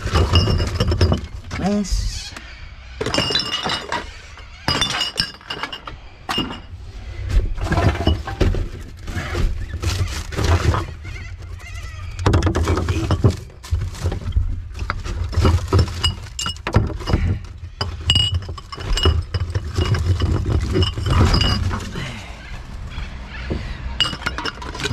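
Plastic wrappers and bottles crinkle and crackle.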